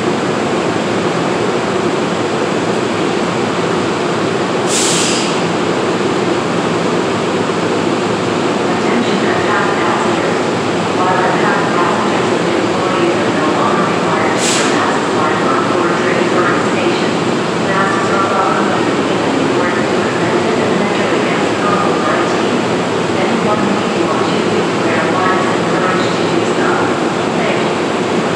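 A train's engine rumbles steadily while it stands, echoing under a low roof.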